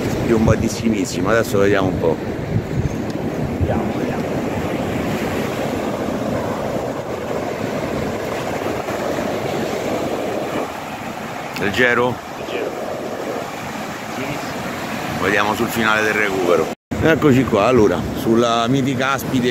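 Waves break and wash up on a beach close by.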